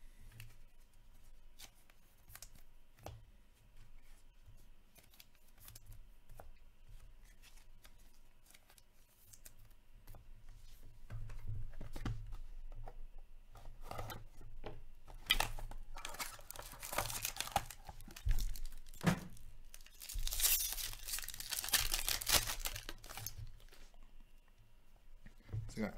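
Cards tap and slide against each other as they are handled.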